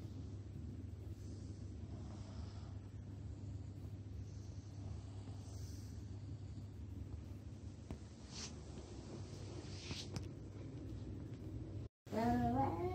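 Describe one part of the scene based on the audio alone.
A young child breathes softly while asleep, close by.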